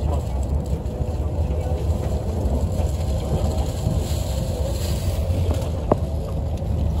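A train rumbles steadily along.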